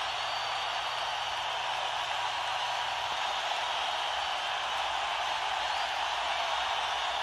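A large crowd cheers and roars steadily in a big echoing hall.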